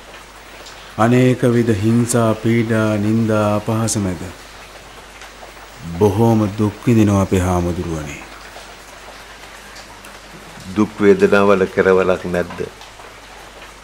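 An elderly man speaks calmly and slowly, close by.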